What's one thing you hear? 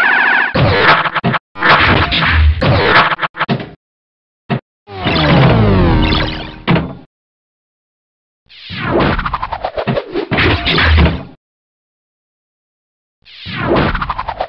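A pinball clacks against bumpers and flippers.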